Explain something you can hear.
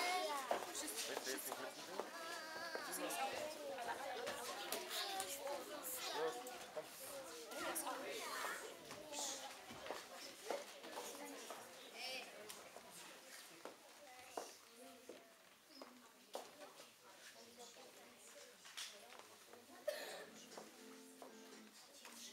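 Many young children chatter and call out in a large echoing hall.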